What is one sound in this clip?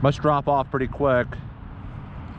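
A man speaks briefly and clearly, close to the microphone.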